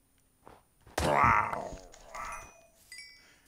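A creature is struck and vanishes with a short puff.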